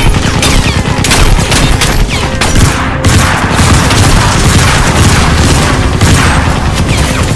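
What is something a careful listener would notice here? Pistols fire in rapid, loud bursts.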